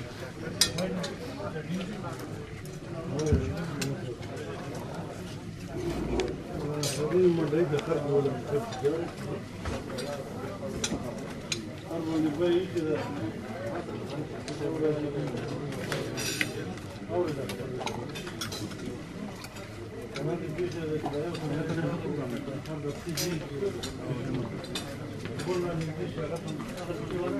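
Cutlery clinks and scrapes on plates.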